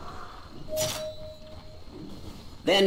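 A magical spell whooshes and chimes briefly.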